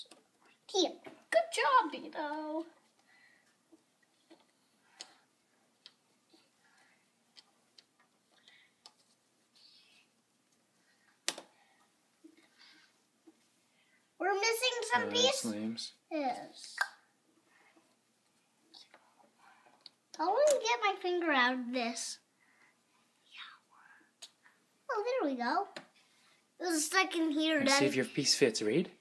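A young child talks close by in bursts.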